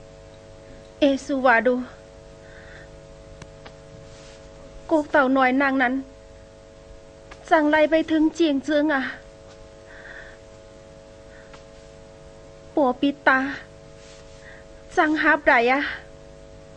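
A young woman speaks with emotion, in short bursts.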